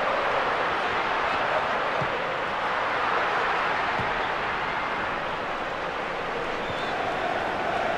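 A large crowd roars steadily.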